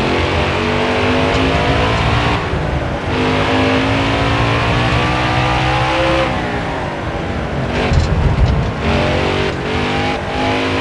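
A race car engine roars loudly, rising and falling in pitch as the gears shift.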